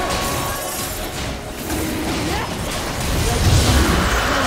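Magic spells whoosh and crackle as a monster is fought.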